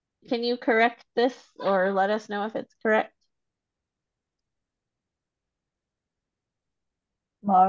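A woman speaks slowly and clearly over an online call, pausing between words.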